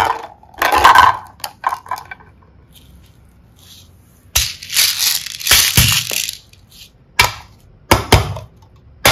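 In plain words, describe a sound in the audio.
Plastic toys clatter and tap as a hand handles them.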